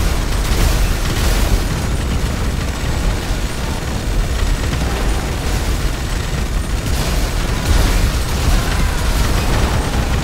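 Fires crackle and roar steadily in an echoing tunnel.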